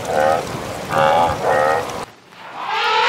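Water buffaloes low.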